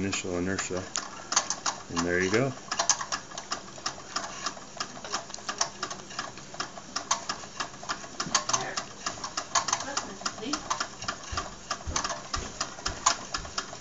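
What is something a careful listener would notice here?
A small single-cylinder toy live-steam engine chuffs rapidly with a fast ticking rhythm.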